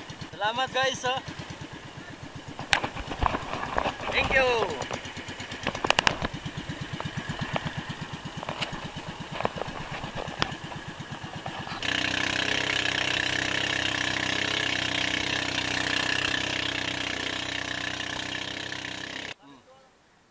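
A small boat engine putters steadily close by.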